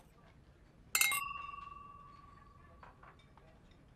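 Wine glasses clink together and ring briefly.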